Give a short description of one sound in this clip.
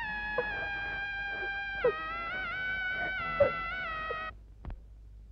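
A young woman sings a long, wavering high note.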